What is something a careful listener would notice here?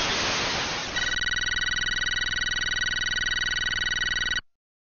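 A video game's score counter ticks with rapid, steady electronic beeps.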